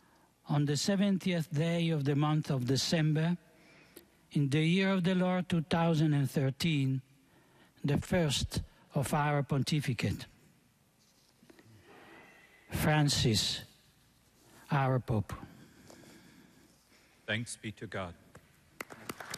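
An elderly man chants into a microphone in a large echoing hall.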